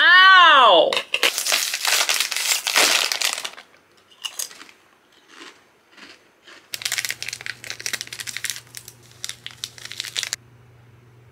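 A packet crinkles and tears open close by.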